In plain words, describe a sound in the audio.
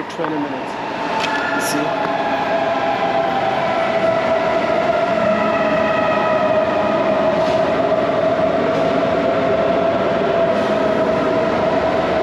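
A train rolls into the station with a rising and falling screech.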